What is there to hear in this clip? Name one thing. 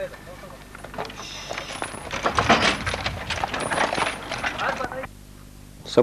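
A horse-drawn wagon rumbles along a dirt road.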